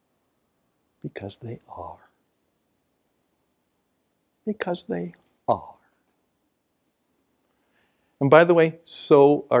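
An older man speaks calmly through a microphone, pausing between phrases.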